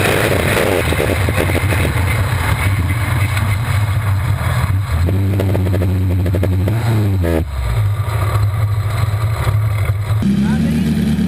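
An off-road buggy engine roars loudly up close, its pitch rising and falling.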